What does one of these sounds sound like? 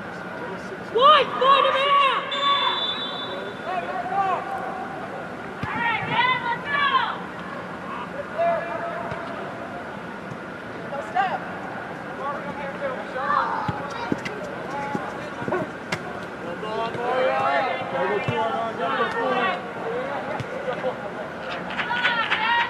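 Young men shout to each other across a large echoing indoor pitch.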